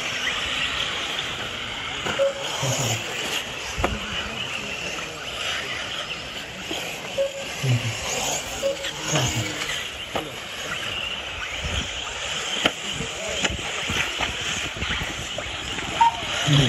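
Small model car engines whine at a high pitch as the cars race around.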